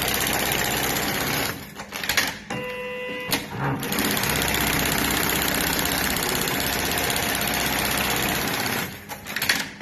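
An industrial programmable pattern sewing machine stitches at high speed through fabric straps.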